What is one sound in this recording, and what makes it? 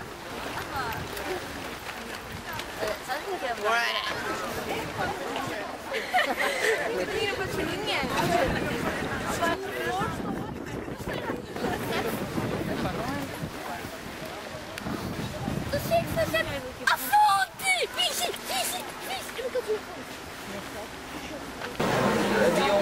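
A crowd of teenagers chatters and laughs nearby outdoors.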